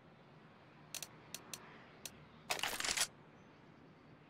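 A menu clicks a few times.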